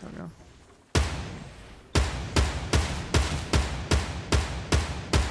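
A rifle fires a loud, sharp shot.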